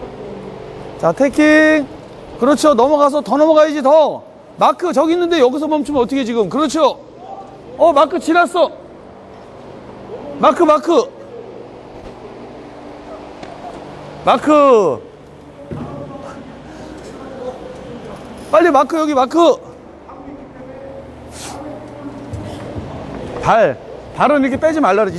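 A woman speaks loudly with animation in an echoing hall.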